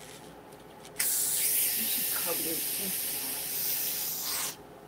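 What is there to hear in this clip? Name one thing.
Gas hisses loudly into a bottle under pressure.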